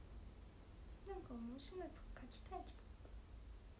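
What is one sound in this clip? A young woman speaks softly and briefly, close by.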